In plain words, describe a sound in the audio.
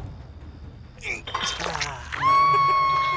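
A young woman screams in pain.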